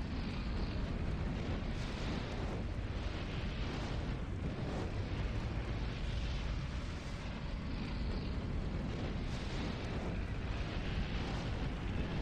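Jet thrusters hiss and blast.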